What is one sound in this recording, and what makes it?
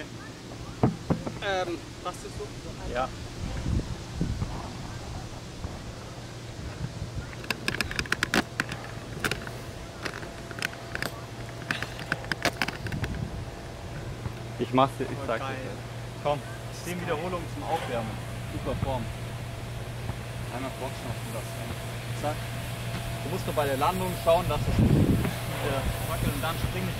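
A young man speaks calmly close by, outdoors.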